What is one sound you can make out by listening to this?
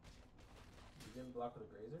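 A man speaks into a microphone, close and with animation.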